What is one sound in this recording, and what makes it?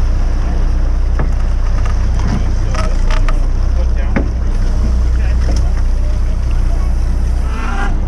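Water splashes as a crab pot breaks the surface.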